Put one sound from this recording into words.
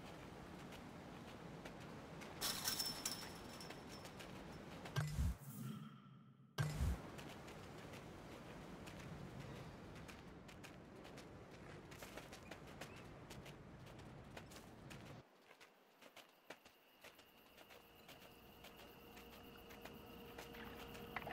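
Small paws patter quickly over snow and hard ground.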